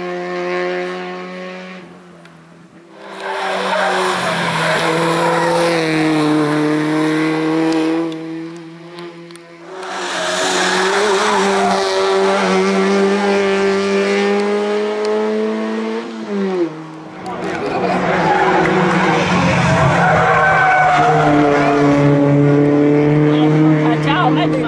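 A rally car engine revs hard and roars past, shifting gears.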